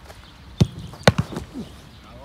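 A football slaps into a goalkeeper's gloves.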